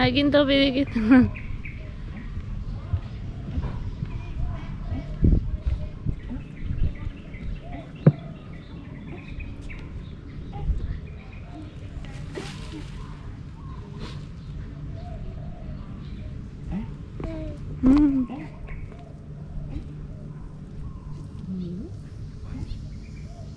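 Footsteps pad along a paved path outdoors.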